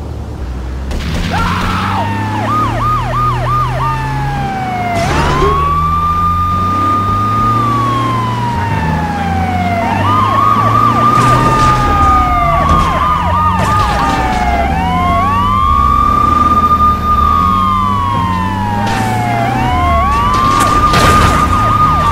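Police sirens wail, rising and falling.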